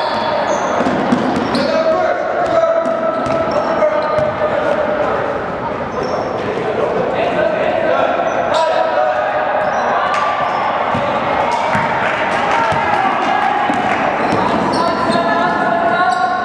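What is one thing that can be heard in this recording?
Spectators chatter in an echoing gym.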